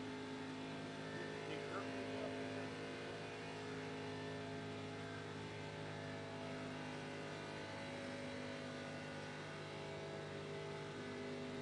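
A race car engine drones at high speed, steady and loud.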